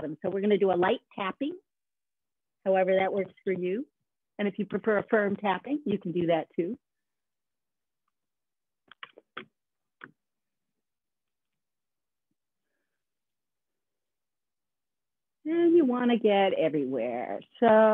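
A woman speaks calmly, guiding others, heard through an online call.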